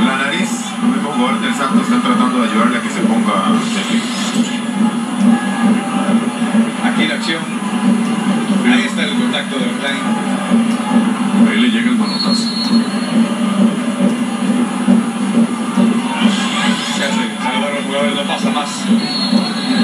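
A stadium crowd roars and cheers throughout.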